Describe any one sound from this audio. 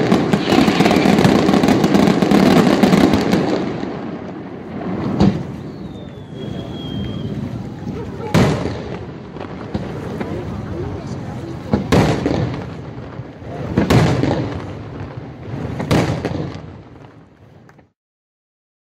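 Fireworks burst with loud booms and crackling, echoing across open air.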